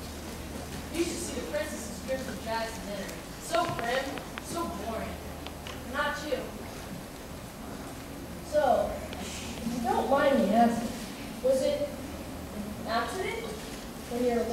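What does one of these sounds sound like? Young actors speak lines on a stage, heard from a distance in a large hall.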